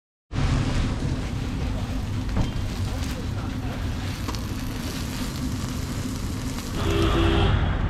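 A metal spatula scrapes across a griddle.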